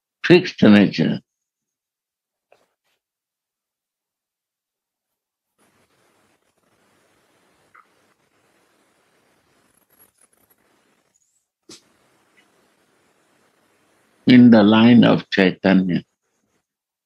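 An elderly man speaks slowly over an online call, in short bursts with long pauses.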